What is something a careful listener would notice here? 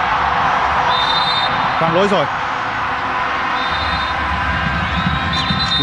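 A large crowd cheers and chants steadily in a big open stadium.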